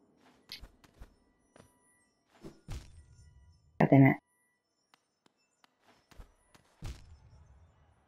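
Small feet land with soft thuds.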